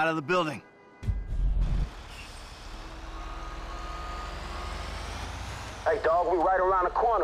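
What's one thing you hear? A fire truck engine rumbles as it drives off.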